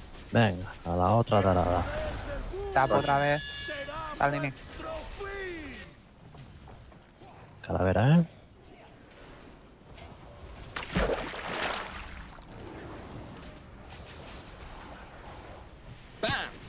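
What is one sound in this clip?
Magic spells crackle and whoosh in a busy fight.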